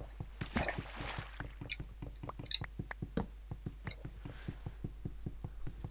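An axe chops at a wooden block with repeated knocks.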